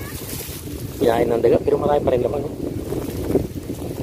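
Leafy plants rustle as they are pulled from dry soil.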